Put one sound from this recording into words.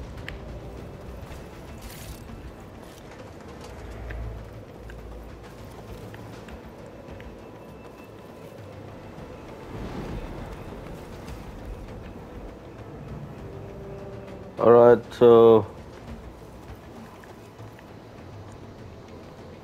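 Footsteps patter on a wooden floor.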